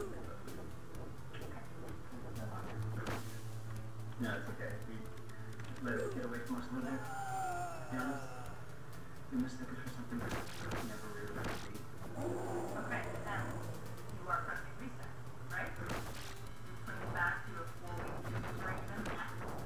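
Retro arcade game music plays steadily with a low pulsing beat.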